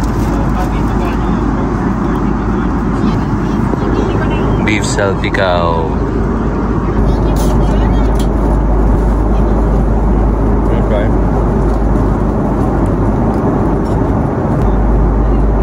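A plane's cabin hums with a steady, low roar.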